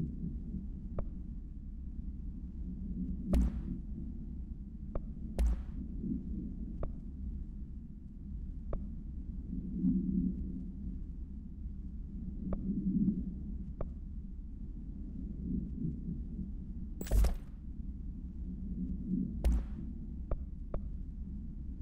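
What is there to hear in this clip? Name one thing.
Short soft interface clicks sound now and then.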